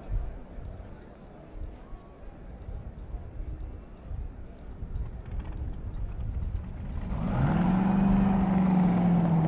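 A racing car engine rumbles at idle close by, then rises to a steady, loud drone.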